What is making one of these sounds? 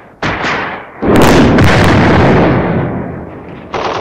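A shell explodes with a heavy roaring blast.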